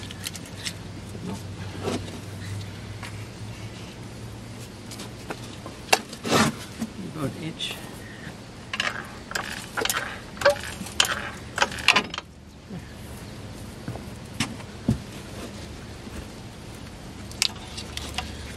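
Metal tools clink and knock against car parts.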